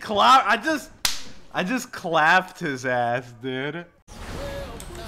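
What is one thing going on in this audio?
A young man shouts and laughs excitedly into a microphone.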